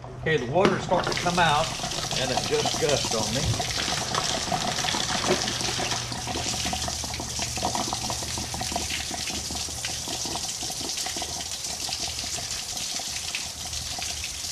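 Water gushes and splashes onto the ground.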